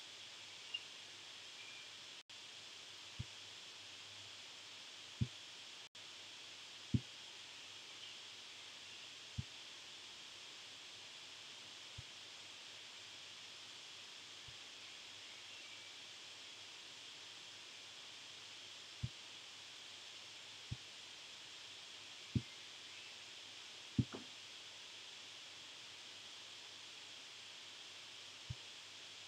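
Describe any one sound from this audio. A computer mouse clicks now and then.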